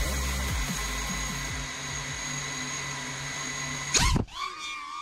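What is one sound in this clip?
A small drone's motors whine steadily at close range.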